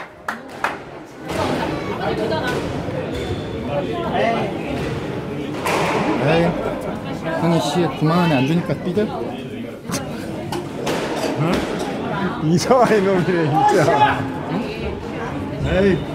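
Sports shoes squeak on a wooden floor.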